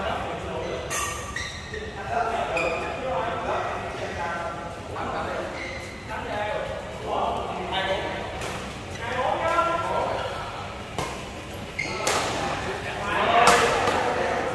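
Shuttlecocks are struck with sharp pops of rackets.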